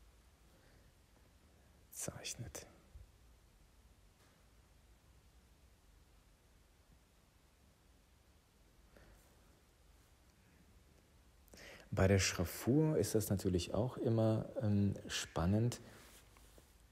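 A felt pen scratches softly across paper.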